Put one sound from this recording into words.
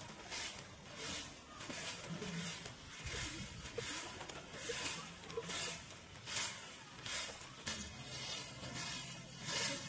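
A broom sweeps dry leaves on dirt ground in quick, rhythmic swishes.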